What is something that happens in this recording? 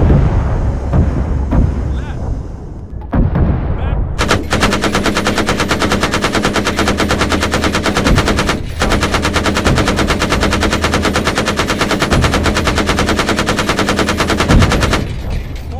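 Explosions boom one after another.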